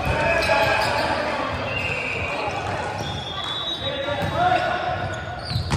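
Young men call out to each other in a large echoing hall.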